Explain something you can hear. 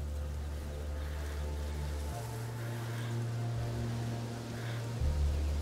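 Dry grass rustles as someone crawls through it.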